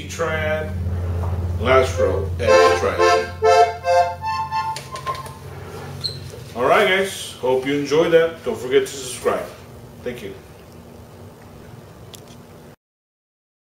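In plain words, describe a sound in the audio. An accordion plays a tune, with notes and chords coming in quick bursts.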